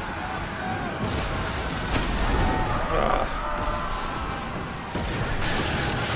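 Cannons fire with deep booms.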